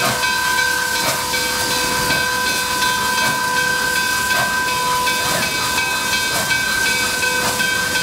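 A steam locomotive whistle blows a steady, loud chord.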